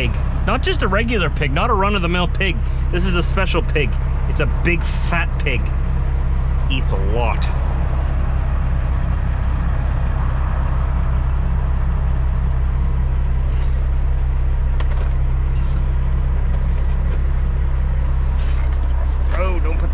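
A truck's diesel engine rumbles steadily close by.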